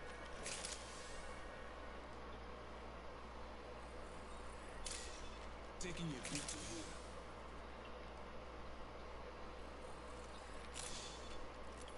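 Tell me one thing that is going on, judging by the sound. A syringe hisses in short bursts.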